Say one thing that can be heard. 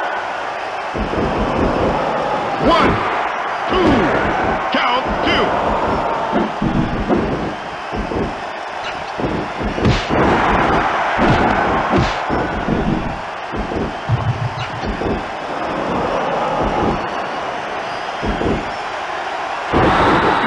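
Heavy thuds of bodies slamming onto a wrestling mat sound repeatedly.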